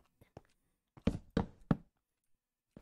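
Blocks are placed with short, soft knocks.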